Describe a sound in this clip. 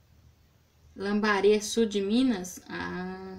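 A woman speaks close by, with animation.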